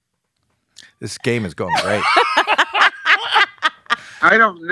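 A man talks and chuckles close to a microphone.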